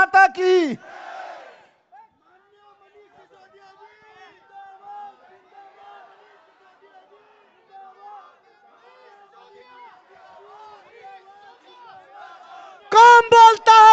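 A large crowd chants back from a distance.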